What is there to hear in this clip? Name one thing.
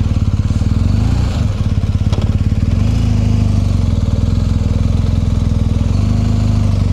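A motorcycle engine revs up briefly and settles.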